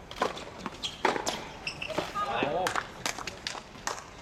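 Tennis shoes squeak and scuff on a hard court as a player runs.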